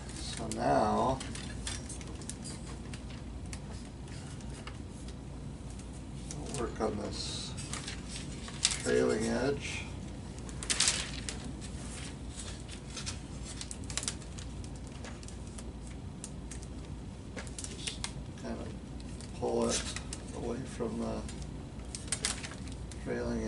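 Stiff plastic film crinkles and rustles as it is handled.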